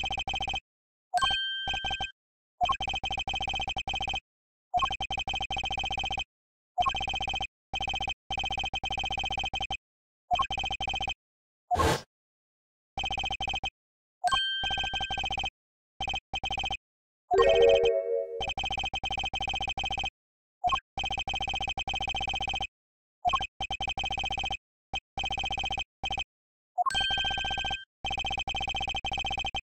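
Rapid electronic blips chatter in short bursts.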